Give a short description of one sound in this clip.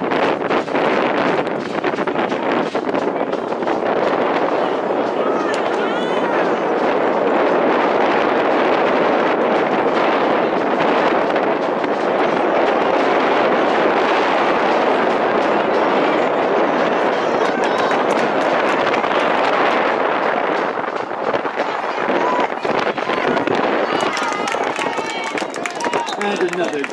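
A crowd of spectators cheers and shouts outdoors in the distance.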